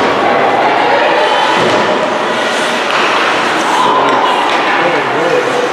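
Ice skates scrape and glide across an ice rink.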